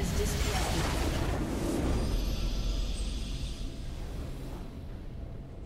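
A triumphant game fanfare swells and then fades away.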